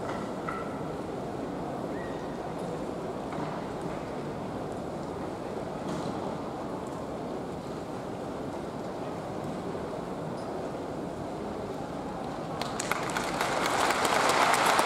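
A large crowd murmurs steadily in a big hall.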